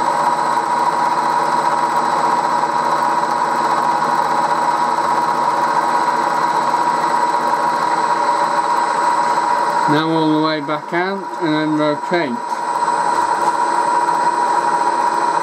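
A milling machine motor whirs steadily.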